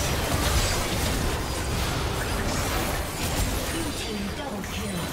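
Game spell effects crackle and burst rapidly during a fight.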